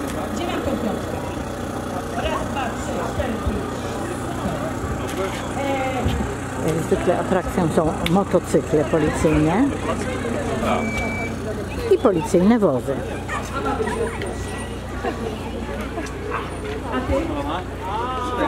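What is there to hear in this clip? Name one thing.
A crowd murmurs in the background, with children calling out.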